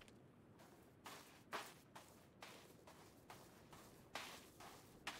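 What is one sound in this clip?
Footsteps crunch on gravel at an even pace.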